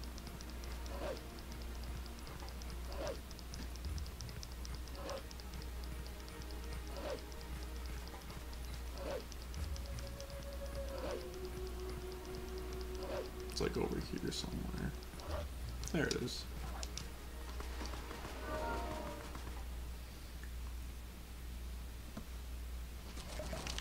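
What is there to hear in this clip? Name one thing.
Video game music plays with a slow, regular beat.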